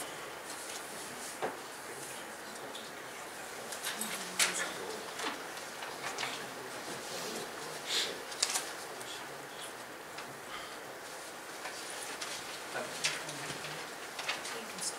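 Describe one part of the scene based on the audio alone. An elderly man speaks calmly into a microphone in a large room.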